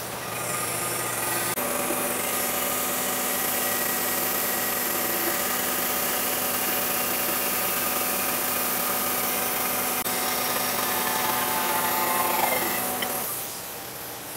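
A milling machine cutter grinds loudly through metal with a steady, high whine.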